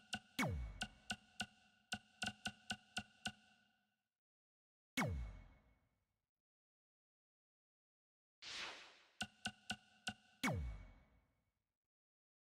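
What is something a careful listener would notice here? Soft electronic whooshes sweep past now and then.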